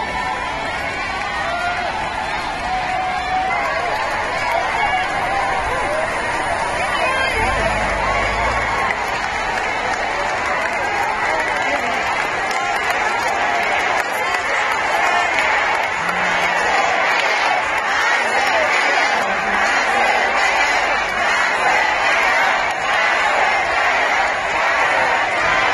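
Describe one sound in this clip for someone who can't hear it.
A large outdoor crowd cheers and chants loudly.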